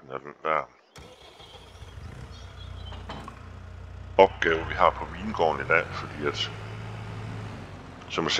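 A tractor engine starts and rumbles steadily at idle.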